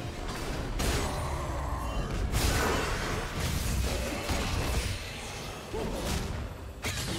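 Game characters clash with whooshing, crackling spell effects and hits.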